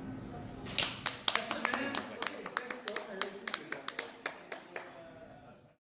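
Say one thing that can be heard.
An acoustic guitar is strummed in sharp, quick strokes.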